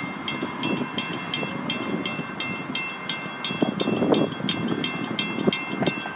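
A level-crossing bell rings rapidly.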